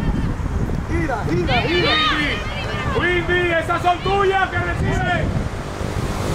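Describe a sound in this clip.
Young women shout across an open field.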